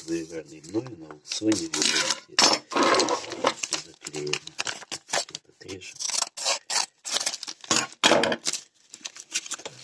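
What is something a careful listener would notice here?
Scissors snip through a padded envelope.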